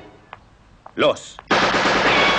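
A rifle fires a single sharp shot.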